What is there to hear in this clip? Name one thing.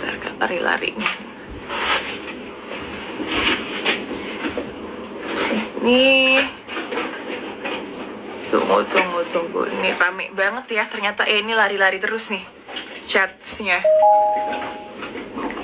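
A young woman talks softly and casually into a phone microphone, close by.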